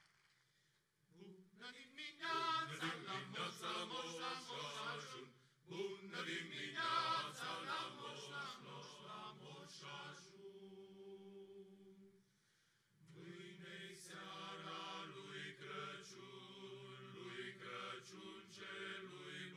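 A men's choir sings together in a large hall.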